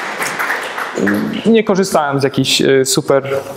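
A young man speaks calmly in an echoing hall.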